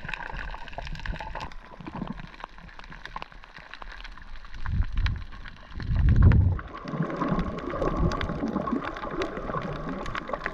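Water rumbles and swirls in low bursts underwater.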